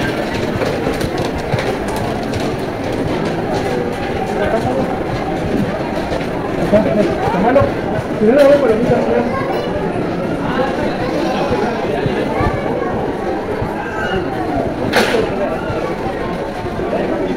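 A crowd of shoppers murmurs throughout, heard indoors with some echo.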